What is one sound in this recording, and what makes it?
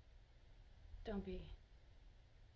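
A woman speaks briefly and calmly.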